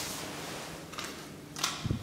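A lift call button clicks as it is pressed.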